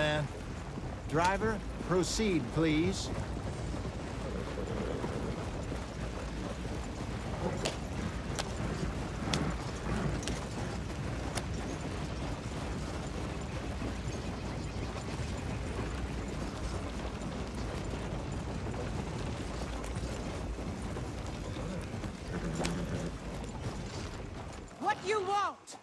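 Horse hooves clop steadily on the dirt.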